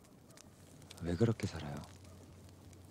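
A young man speaks quietly and sadly, close by.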